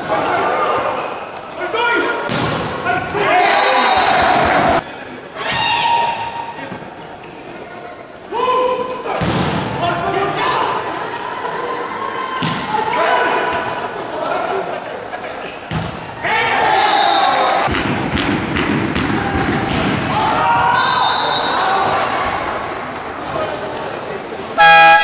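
Young men shout and call out to each other on a court.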